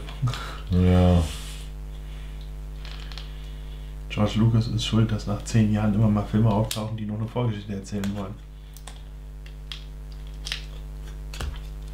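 Small plastic bricks click and clatter as they are sorted by hand.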